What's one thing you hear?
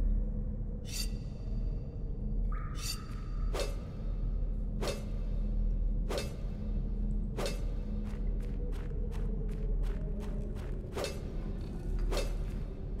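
A pickaxe strikes rock with sharp, ringing clinks.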